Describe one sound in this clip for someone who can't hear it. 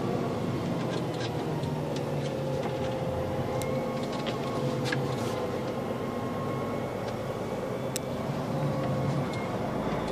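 Loose parts in a truck cab rattle and click now and then.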